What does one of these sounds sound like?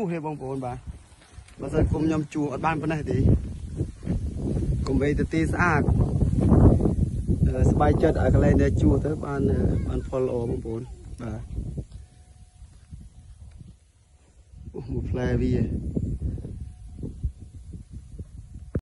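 Wind blows through tall grass outdoors.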